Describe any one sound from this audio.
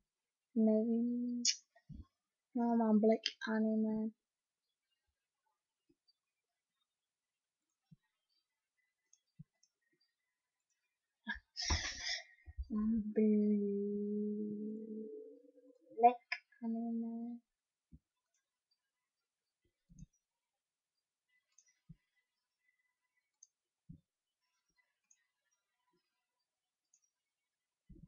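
A mouse clicks several times.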